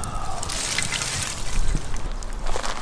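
Hot coals clatter and tumble as they are poured out.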